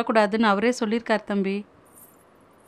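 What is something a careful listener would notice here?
A woman speaks quietly and briefly, close by.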